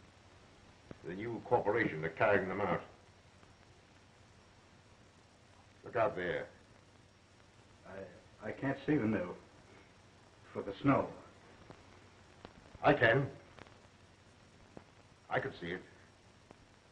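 A man speaks calmly in short phrases, with pauses between them.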